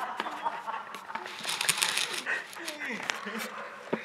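Young men laugh loudly nearby.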